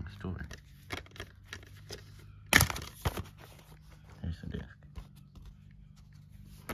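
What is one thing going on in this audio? Hands handle plastic disc cases, which rattle and tap.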